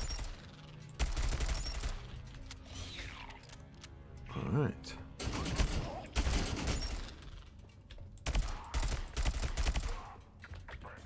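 A rapid-fire gun shoots in short, loud bursts.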